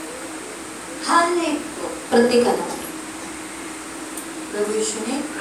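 A woman speaks through a microphone and loudspeaker in an echoing room.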